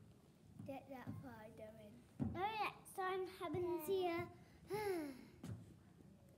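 A young boy speaks his lines in a high, clear voice, close by.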